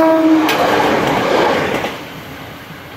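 A train rushes past close by with a loud roar.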